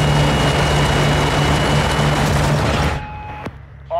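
A propeller plane's engines roar loudly up close.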